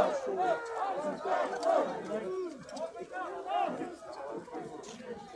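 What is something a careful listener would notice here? Several men talk loudly and agitatedly over one another close by, outdoors.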